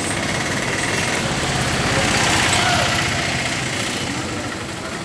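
An auto-rickshaw engine rattles close by and passes.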